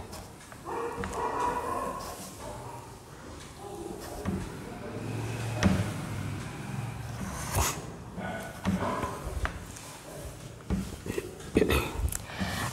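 A woman speaks calmly nearby, as if teaching.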